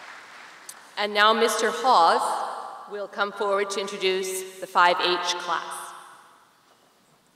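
A woman speaks clearly over a loudspeaker in an echoing hall.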